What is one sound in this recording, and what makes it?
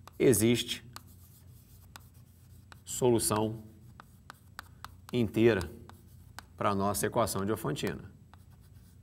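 A man speaks calmly in short phrases, close by.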